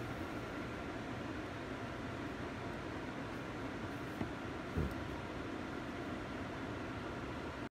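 A small button clicks a few times.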